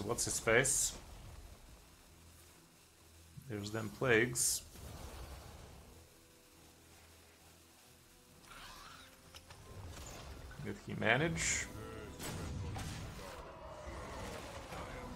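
Game card effects chime and whoosh.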